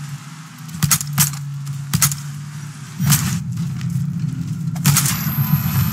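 Shotgun blasts ring out several times with a heavy echo.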